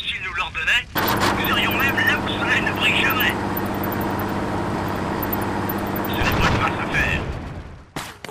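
A tank engine rumbles and clanks steadily.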